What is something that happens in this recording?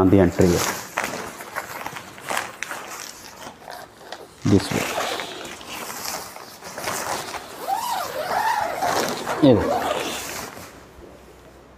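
Tent fabric rustles and crinkles as it is handled.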